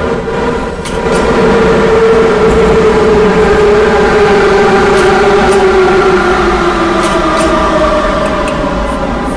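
A train's motor whines and falls in pitch as it slows down.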